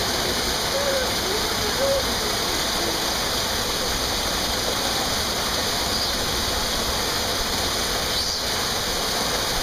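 Water pours and splashes steadily into a pool.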